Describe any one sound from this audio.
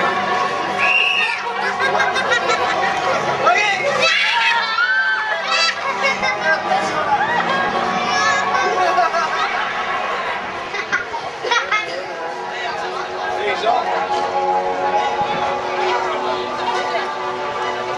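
A crowd of people chatters and laughs outdoors.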